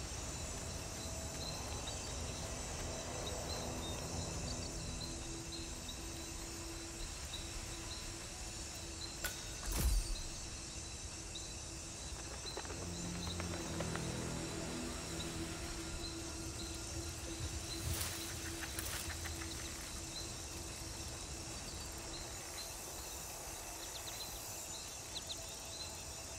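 Quick footsteps patter steadily.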